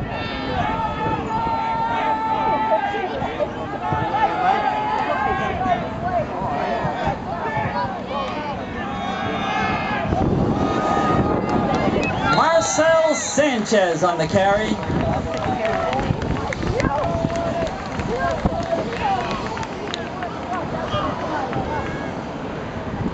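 Young men on the sideline shout with excitement outdoors.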